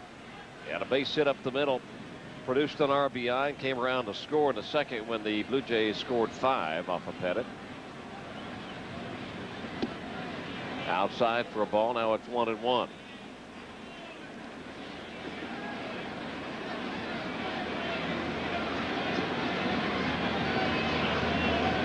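A large crowd murmurs in a stadium and grows louder.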